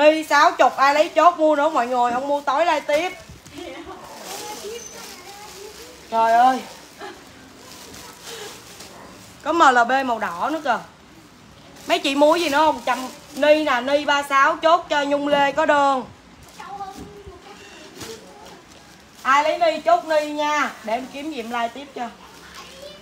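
A young woman talks animatedly, close by.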